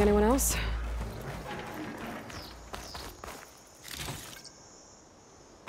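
Footsteps crunch over grass and wooden planks.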